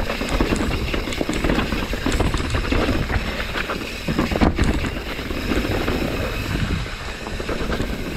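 Bicycle tyres roll and crunch over a rocky dirt trail.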